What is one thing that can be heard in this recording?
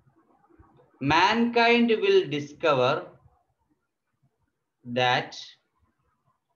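A man speaks close by in short, clear phrases.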